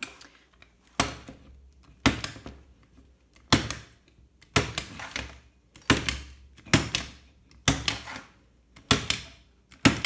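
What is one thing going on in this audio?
A paper trimmer blade snaps sharply several times as it cuts a sheet.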